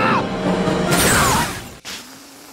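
A car crashes into a pole with a loud crunch of metal.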